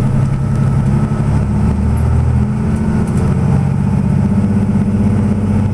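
A tram rumbles past close by.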